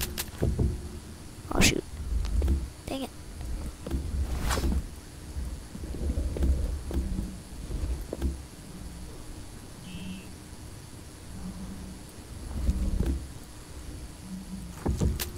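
Blocks of stone are placed with short, dull knocks.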